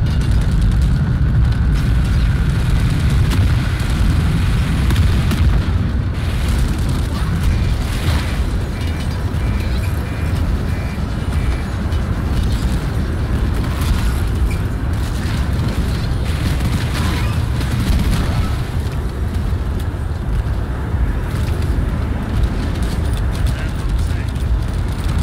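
Loud explosions rumble and boom.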